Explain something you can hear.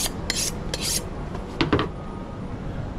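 A steel knife is honed with quick metal scrapes.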